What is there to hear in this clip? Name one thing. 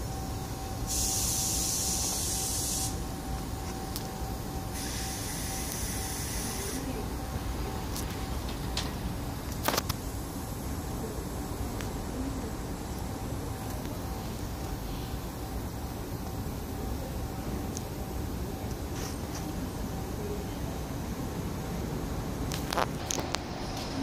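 A subway train rumbles slowly past.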